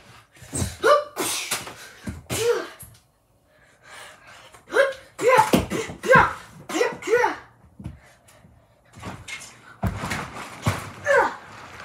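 A young child shouts and laughs excitedly nearby.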